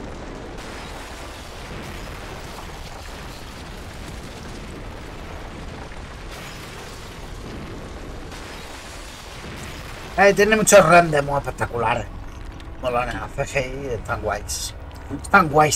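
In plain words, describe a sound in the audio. Rubble crashes and rumbles as the ground caves in.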